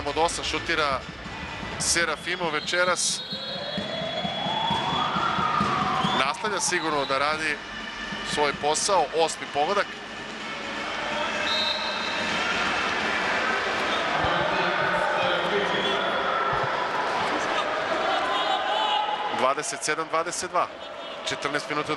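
A large crowd cheers and roars in an echoing hall.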